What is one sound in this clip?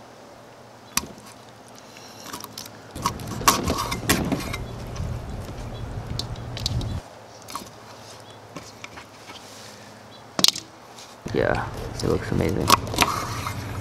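A knife chops down sharply on a wooden board.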